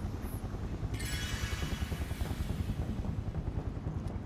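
A shimmering magical whoosh sweeps past.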